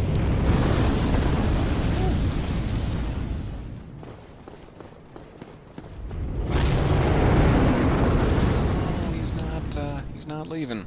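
Fire roars loudly in bursts of flame.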